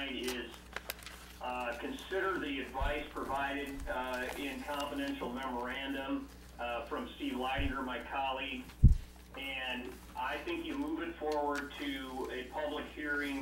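Papers rustle as pages are turned.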